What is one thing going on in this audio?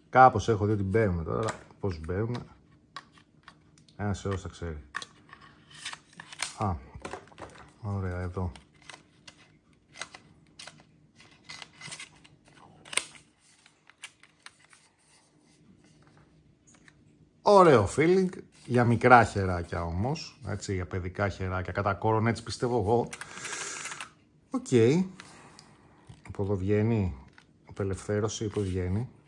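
Plastic game controller parts click and snap together in hands.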